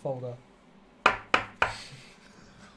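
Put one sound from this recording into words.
Card packs knock sharply on a table.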